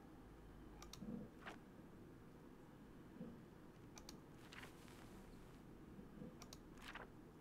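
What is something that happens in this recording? A man murmurs briefly and quietly into a close microphone.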